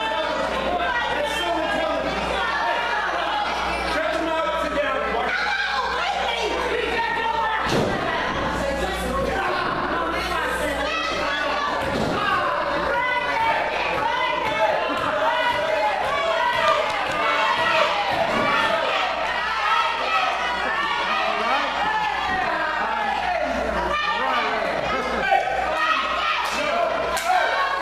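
A crowd cheers and shouts throughout, in a room that echoes.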